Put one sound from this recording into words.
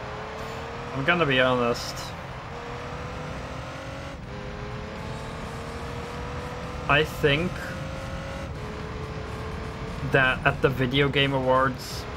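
A young man speaks close to a microphone in short animated bursts.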